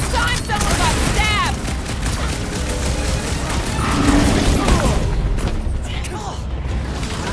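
Heavy blows and metallic impacts clash in a fight.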